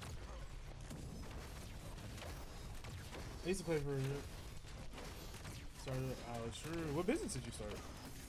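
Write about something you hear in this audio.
Energy blasts and metal impacts crackle rapidly in a fight.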